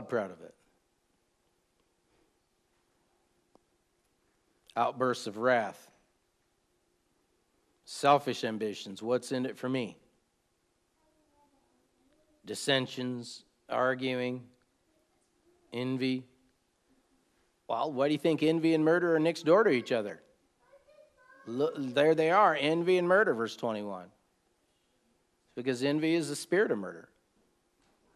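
A middle-aged man speaks calmly and slowly, close to a microphone, with long pauses.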